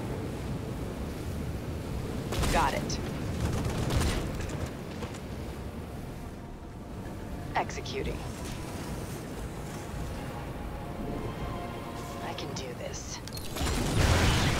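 Flames roar steadily.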